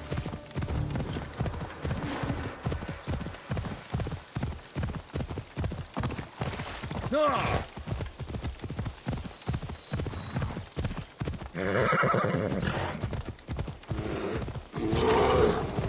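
A horse gallops with quick, rhythmic hoofbeats.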